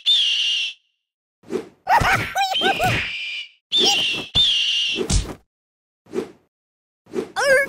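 A soft toy thumps against walls.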